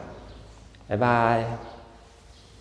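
A man speaks a short greeting close to a microphone.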